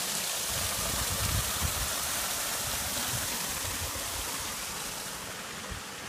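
A small waterfall splashes steadily into a pond.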